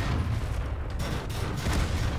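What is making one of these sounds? A tank cannon fires with a loud boom.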